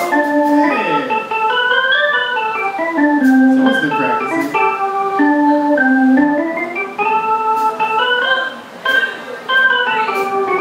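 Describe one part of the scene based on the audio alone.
A drum kit taps out a beat.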